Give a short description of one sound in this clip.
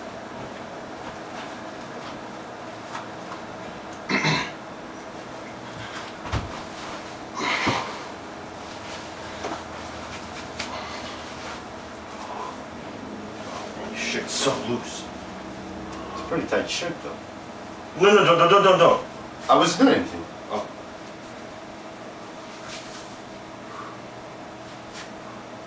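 A ceiling fan hums steadily.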